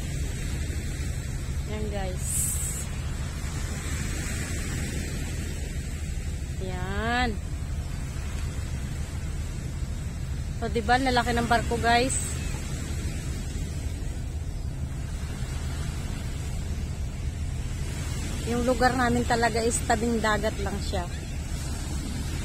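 Wind blows steadily across the open shore.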